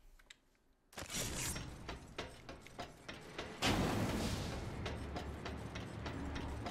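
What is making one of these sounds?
Heavy footsteps clank along a metal walkway.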